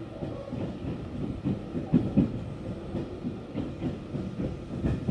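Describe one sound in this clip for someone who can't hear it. A train rumbles steadily along the tracks with occasional low thumps.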